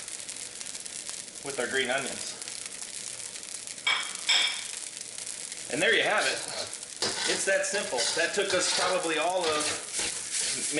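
Food sizzles in a hot pan.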